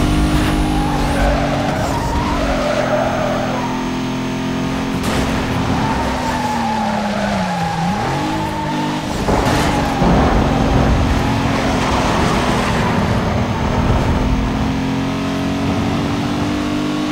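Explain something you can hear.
A racing car engine roars at high speed, its pitch dipping and rising with gear shifts.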